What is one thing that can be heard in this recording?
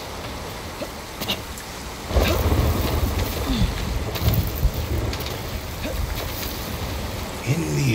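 A climber scrapes and scuffs against rock.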